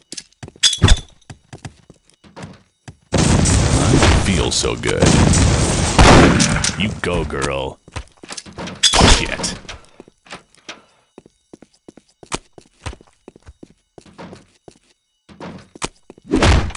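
A shotgun fires a sharp shot.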